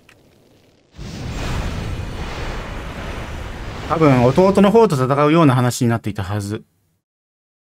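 A deep magical rushing roar swells and swirls.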